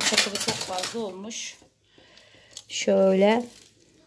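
Gravel pours from a small metal tin and patters onto soil.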